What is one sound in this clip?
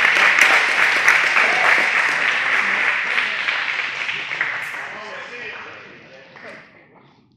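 A crowd cheers and claps in a large echoing hall, then slowly fades.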